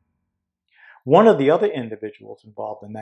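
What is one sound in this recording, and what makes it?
An older man speaks with animation into a microphone.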